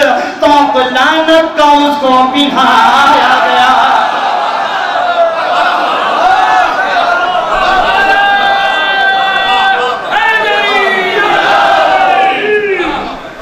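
A young man recites with passion through a microphone and loudspeakers.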